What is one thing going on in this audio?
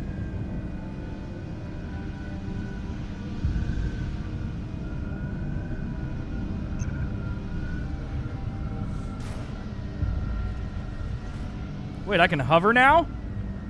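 A flying craft's engine hums steadily.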